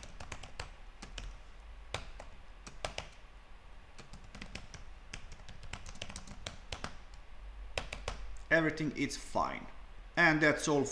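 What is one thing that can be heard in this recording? Keys click rapidly on a keyboard as someone types.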